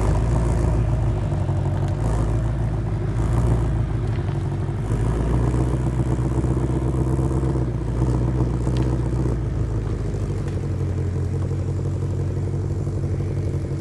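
A powerful car engine idles with a deep, rumbling burble.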